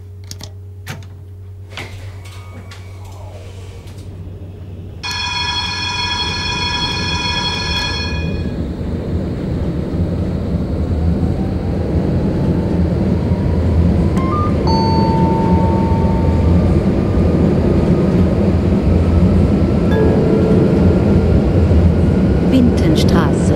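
A tram rumbles along rails, growing louder as it gathers speed.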